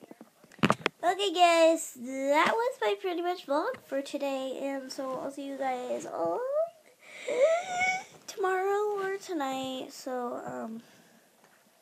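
A young girl talks with animation close to the microphone.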